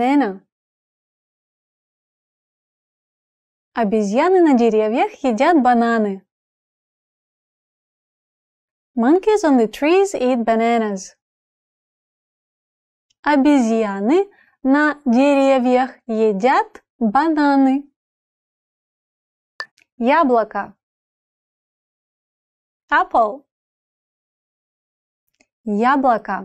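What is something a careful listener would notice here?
A woman speaks clearly and calmly into a close microphone, pausing between phrases.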